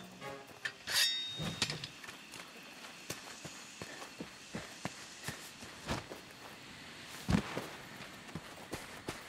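Footsteps thud on dirt.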